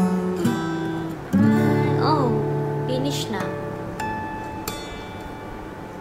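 An acoustic guitar plays plucked notes.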